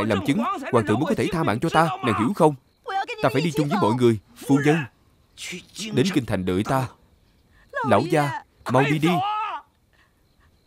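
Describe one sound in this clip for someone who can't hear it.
An elderly man pleads in a tearful, strained voice.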